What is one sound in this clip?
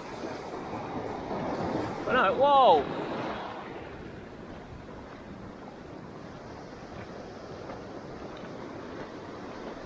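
Waves wash and foam onto a shore nearby.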